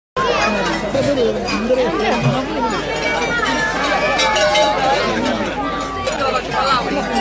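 A group of young people sing and call out together through loudspeakers.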